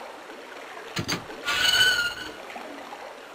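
A metal gate creaks open.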